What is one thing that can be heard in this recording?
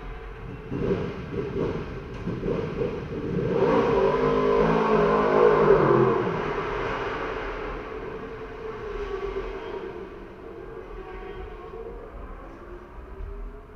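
A motorcycle engine idles close by, blipping the throttle now and then.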